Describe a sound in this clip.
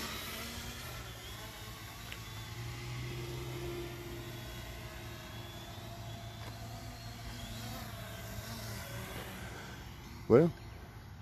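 A drone's propellers whir steadily.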